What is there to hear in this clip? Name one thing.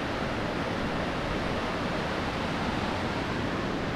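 Water rushes and splashes down a rocky stream.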